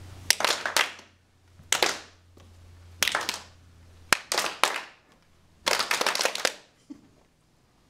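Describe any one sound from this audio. A man shouts out excitedly in short bursts.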